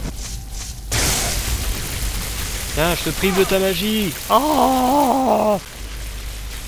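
Lightning spells crackle and buzz.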